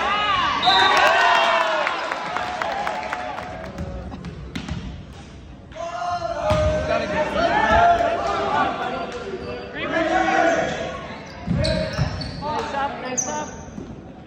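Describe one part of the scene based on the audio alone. Teenage boys cheer and shout loudly in an echoing hall.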